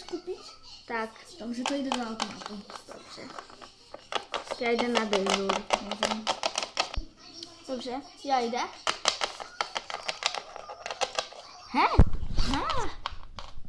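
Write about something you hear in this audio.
Small plastic toy figures tap and clatter on a wooden tabletop.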